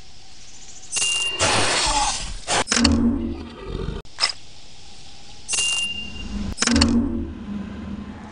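A large creature bellows and roars.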